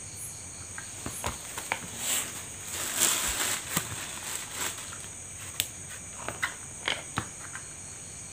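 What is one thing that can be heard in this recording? Wires and small parts click and rustle as hands handle them.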